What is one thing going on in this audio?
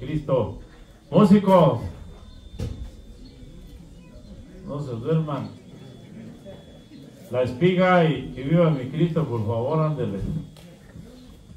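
A man speaks calmly through a loudspeaker outdoors.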